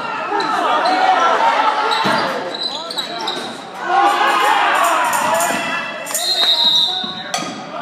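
Spectators shout and cheer loudly in a large echoing hall.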